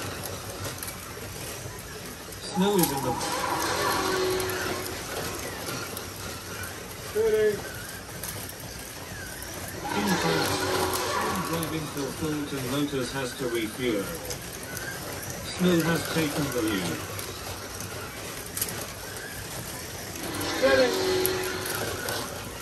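Small electric slot cars whir steadily around a track.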